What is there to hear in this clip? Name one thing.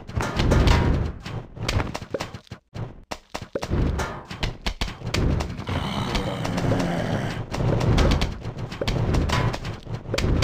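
Cartoonish game pops and splats repeat rapidly.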